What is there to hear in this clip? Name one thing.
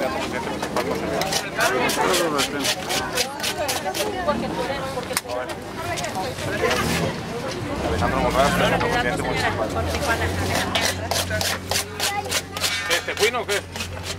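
A middle-aged man talks with people close by.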